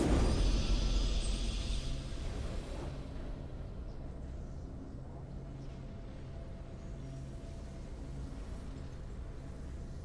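A triumphant game fanfare plays.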